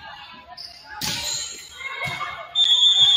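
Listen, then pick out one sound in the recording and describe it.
A volleyball is struck with a hard smack.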